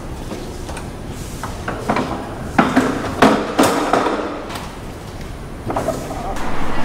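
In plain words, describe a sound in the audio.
A metal trolley rattles as it is unfolded and wheeled over concrete.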